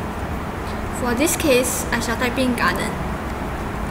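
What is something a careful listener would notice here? A young woman speaks briefly and calmly close to a microphone.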